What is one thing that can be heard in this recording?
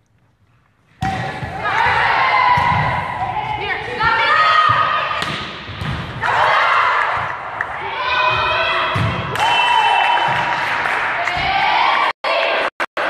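Young women shout and call out to each other in an echoing hall.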